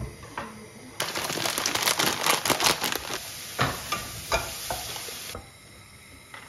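Dry pasta rattles as it pours from a bag into a pan.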